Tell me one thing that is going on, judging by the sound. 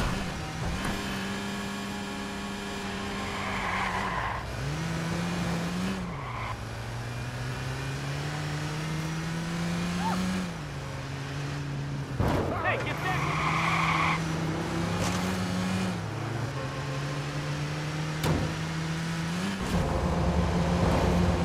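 A car engine revs hard, rising and falling in pitch as the gears shift.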